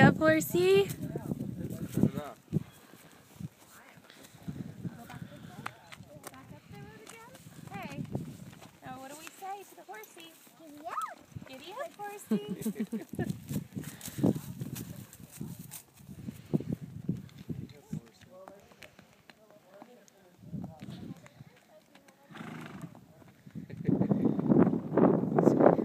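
Horse hooves thud softly on a dirt track.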